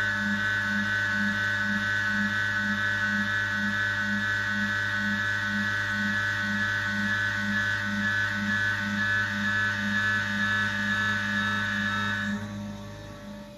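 A milling machine whirs steadily with a pulsing hum as its cutter grinds into metal.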